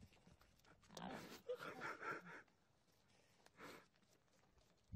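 A goat licks and slurps noisily at a drink can.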